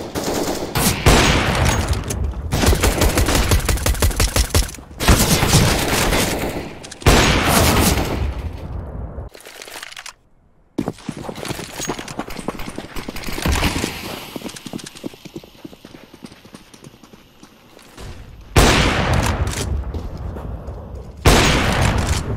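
A sniper rifle fires loud, single shots that ring out.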